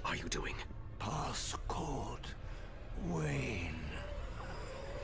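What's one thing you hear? An elderly man speaks weakly and haltingly, close by.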